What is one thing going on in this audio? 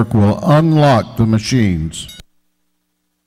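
An older man speaks calmly into a microphone in a large echoing hall.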